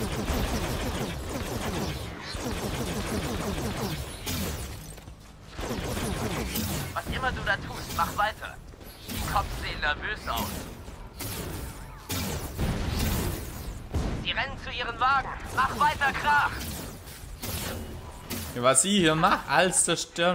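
Energy blasts whoosh and crackle.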